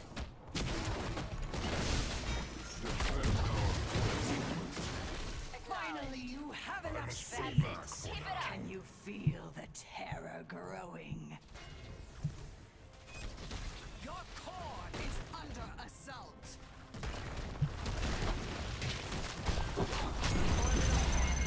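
Video game battle effects whoosh, crackle and boom.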